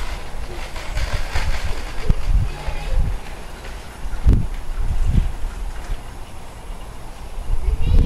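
Wind buffets outdoors in low gusts.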